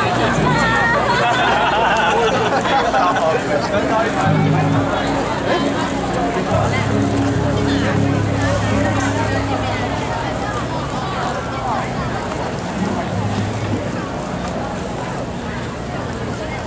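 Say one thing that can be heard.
Footsteps scuff on pavement.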